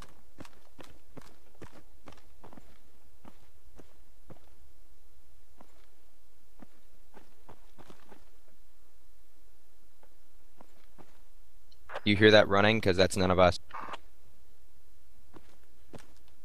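Footsteps thud on a hard floor at a walking pace.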